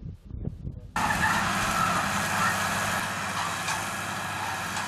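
A tractor engine roars loudly nearby.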